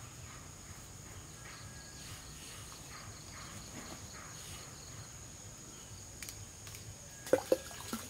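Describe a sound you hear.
A knife blade knocks and scrapes against bark.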